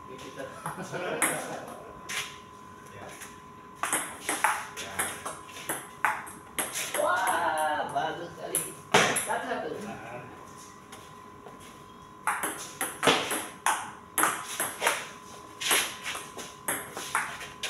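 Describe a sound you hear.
A ping pong ball clicks back and forth between paddles and a table outdoors.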